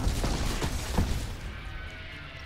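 Cannons fire in a rapid burst.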